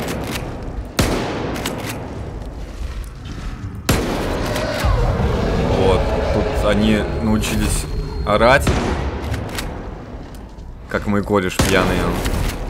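A shotgun fires loudly several times.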